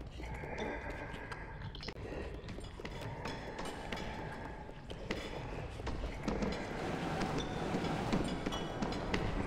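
Small footsteps patter on creaking wooden floorboards.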